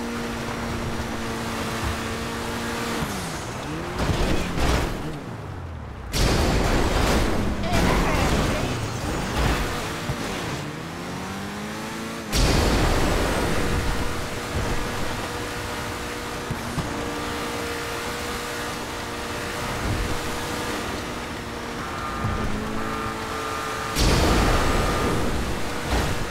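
A car engine roars and revs, shifting up and down.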